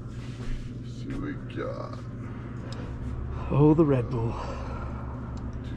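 Refrigerators hum steadily close by.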